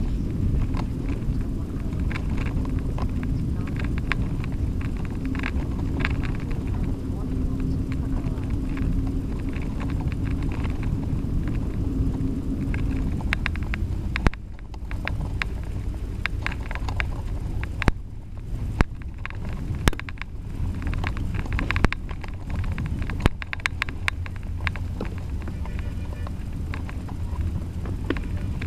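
Bicycle tyres roll over a dirt track.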